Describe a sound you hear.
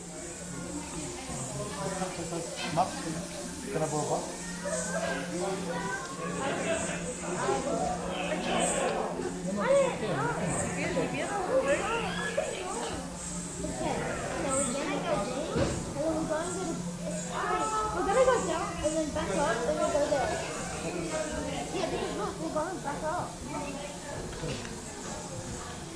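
Several adults chat close by.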